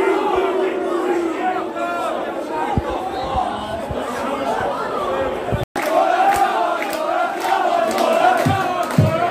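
A crowd of spectators murmurs and shouts outdoors.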